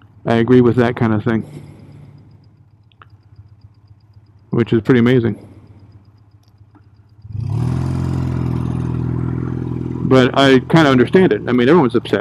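A motorcycle engine revs sharply up and down in short bursts.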